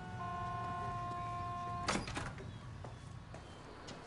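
A glass door swings open.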